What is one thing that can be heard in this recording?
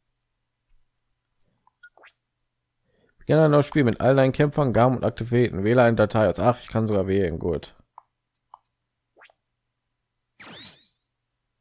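Short electronic menu blips sound as a selection moves.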